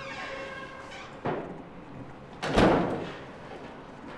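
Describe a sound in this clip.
A door opens and bumps shut.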